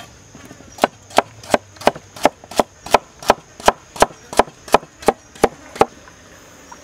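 A knife chops through a carrot on a wooden board in quick, even strokes.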